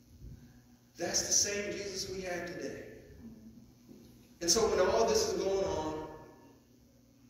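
A man speaks calmly into a microphone in a reverberant hall.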